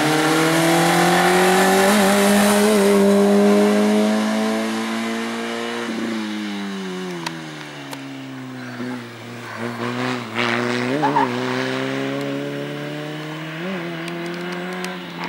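A race car engine roars loudly as the car speeds past, then drops in pitch as it moves away.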